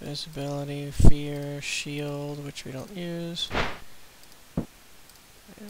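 A game makes short clicks as items are picked up.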